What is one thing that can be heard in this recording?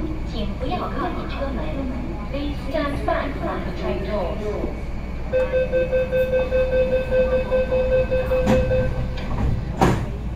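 A train hums steadily at a platform.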